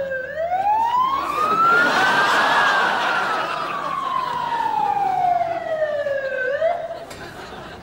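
An ambulance siren wails, rising and falling.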